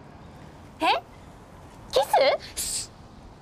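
A teenage girl speaks softly up close.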